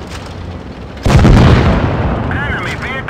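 Shells explode with a heavy blast.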